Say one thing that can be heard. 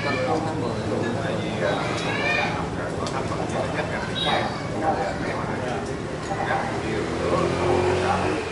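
Several men talk and chat over one another nearby.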